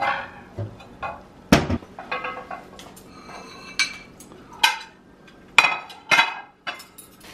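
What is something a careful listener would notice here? Ceramic plates clatter together.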